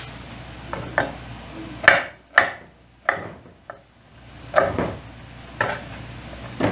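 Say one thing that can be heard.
A knife taps on a wooden board.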